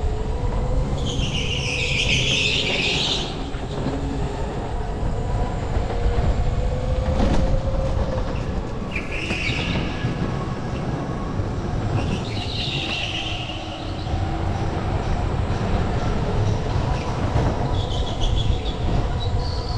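Go-kart tyres squeal in bursts on the turns.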